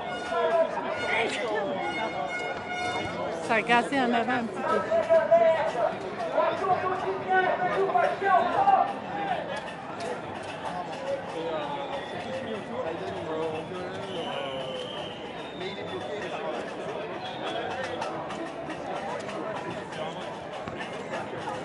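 A crowd of marchers murmurs and chatters outdoors.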